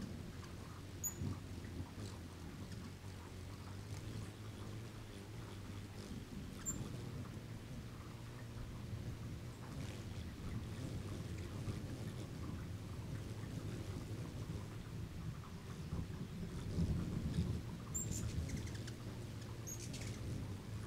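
Hummingbirds give short, high chirps now and then.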